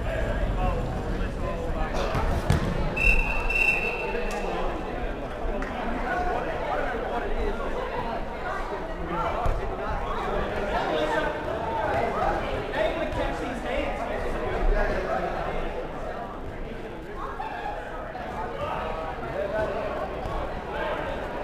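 Young men shout and call to each other across a large echoing hall.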